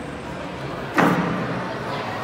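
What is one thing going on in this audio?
A boy lands with a thud on a padded mat.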